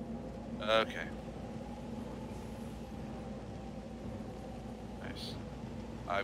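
A low electronic hum drones steadily.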